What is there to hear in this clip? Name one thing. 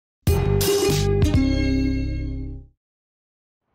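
A short bright electronic jingle plays and rings out.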